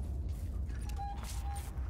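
A handheld tracker beeps softly twice.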